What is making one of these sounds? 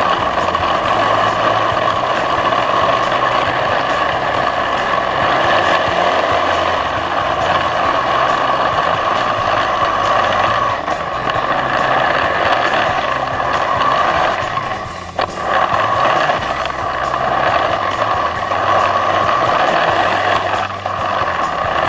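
A snowmobile engine drones loudly and steadily, rising and falling as the throttle changes.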